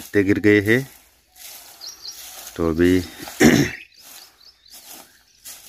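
A broom sweeps dry leaves and twigs on dirt with rough, scratchy strokes.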